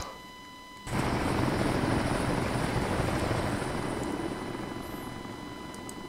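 A helicopter's rotors thump and its engine roars steadily.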